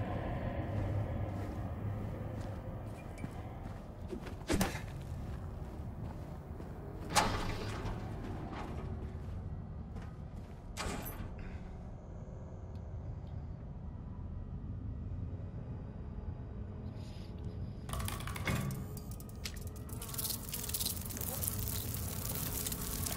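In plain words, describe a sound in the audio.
Footsteps crunch slowly on a gritty floor.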